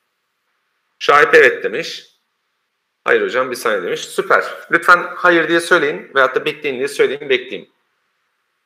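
A man speaks calmly, heard through an online call.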